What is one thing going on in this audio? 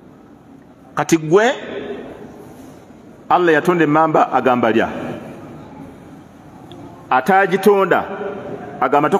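A middle-aged man speaks slowly and earnestly into a microphone, in short bursts with pauses, his voice echoing in a room.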